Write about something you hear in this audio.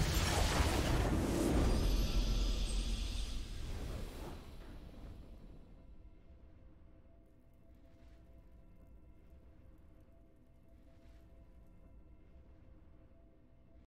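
A triumphant game fanfare plays, then fades to a soft hum.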